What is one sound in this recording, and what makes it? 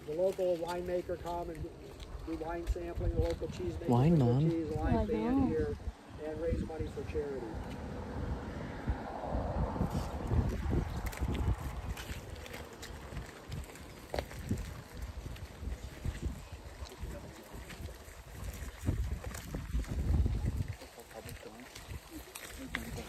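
Flip-flops slap on a stone path.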